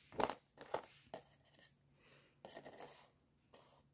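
A small plastic piece clicks as it is set down on paper.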